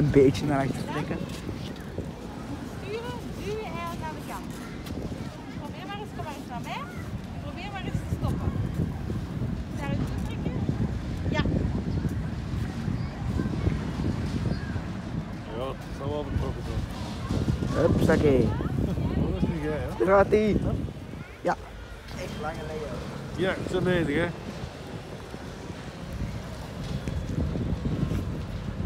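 A woman and a child talk nearby outdoors.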